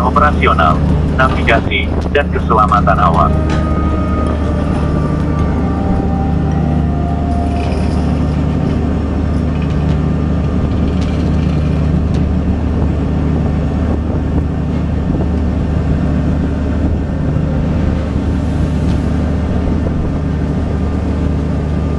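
A ship's engine hums low and steady.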